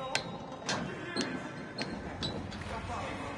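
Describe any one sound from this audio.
Metal rungs clank as someone climbs a ladder.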